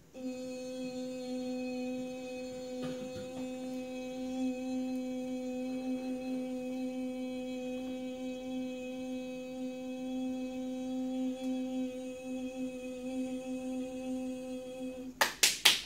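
A woman sings one long, steady note close by.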